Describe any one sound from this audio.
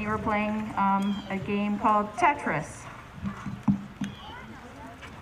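A woman speaks calmly through a loudspeaker outdoors.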